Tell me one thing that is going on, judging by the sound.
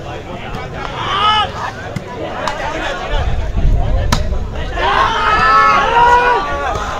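Men shout loudly outdoors.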